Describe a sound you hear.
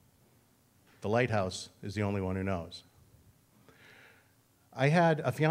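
A middle-aged man speaks expressively into a microphone.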